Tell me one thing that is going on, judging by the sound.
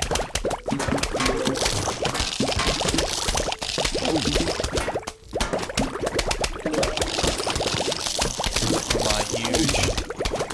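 Game plants puff out spores with quick popping sounds.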